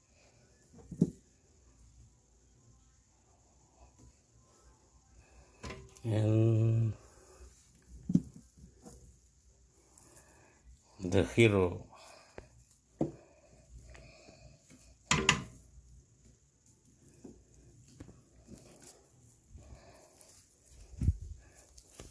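A hand bumps and knocks against glass jars close by.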